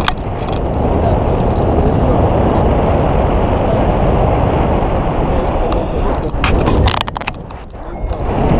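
Strong wind rushes and buffets loudly over a microphone outdoors.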